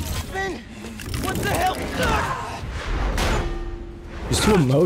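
A young man speaks tensely.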